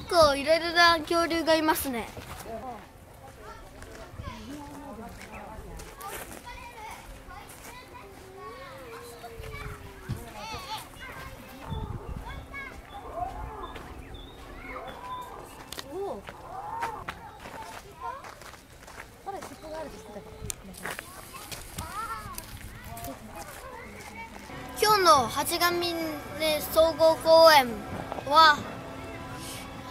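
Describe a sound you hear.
A young boy speaks with animation, close to the microphone.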